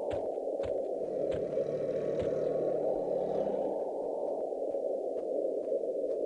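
A campfire crackles steadily.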